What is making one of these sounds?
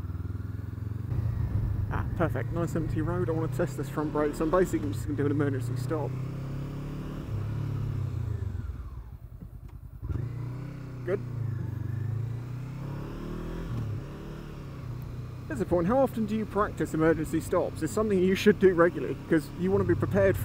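A motorcycle engine hums and revs steadily while riding.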